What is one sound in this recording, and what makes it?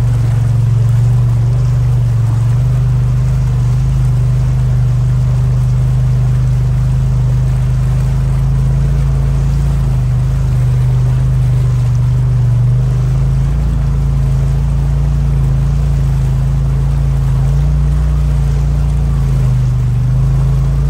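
Tyres churn and splash through muddy water.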